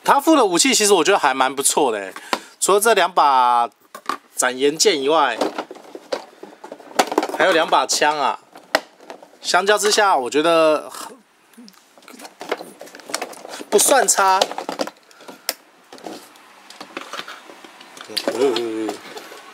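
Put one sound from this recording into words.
Plastic packaging crinkles and clicks as a toy is handled.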